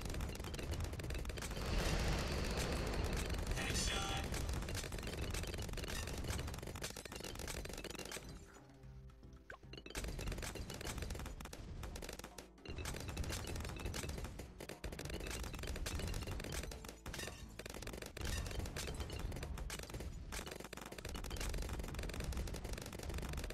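Game explosions boom.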